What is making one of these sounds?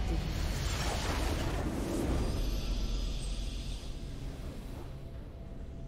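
A triumphant game fanfare rings out.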